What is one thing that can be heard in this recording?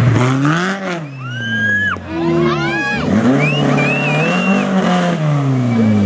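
Tyres squeal briefly on the road.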